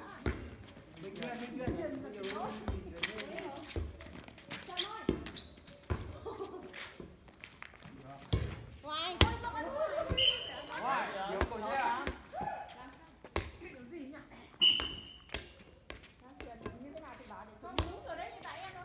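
A volleyball thumps off players' arms and hands.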